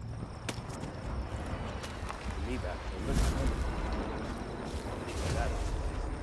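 Footsteps thud on the ground.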